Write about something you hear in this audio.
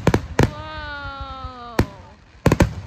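A firework rocket whistles as it rises.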